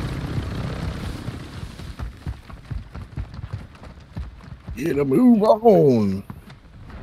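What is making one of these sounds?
Footsteps crunch on sand.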